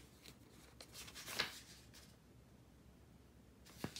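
A pen is set down on paper with a light tap.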